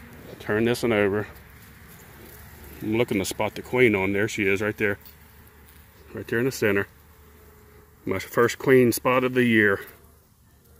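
Honeybees buzz close by.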